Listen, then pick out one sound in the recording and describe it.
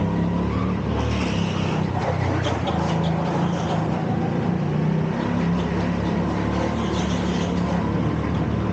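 Kart tyres squeal on the smooth track.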